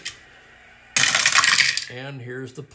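Dice rattle and tumble in a wooden box.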